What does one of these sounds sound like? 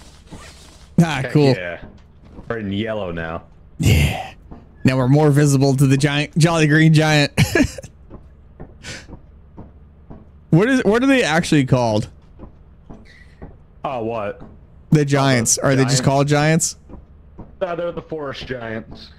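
A middle-aged man talks with animation into a close microphone, in bursts with pauses.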